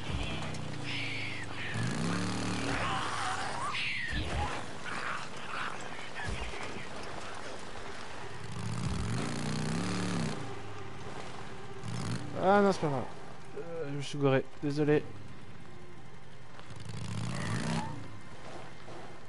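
A motorcycle engine hums and revs up and down.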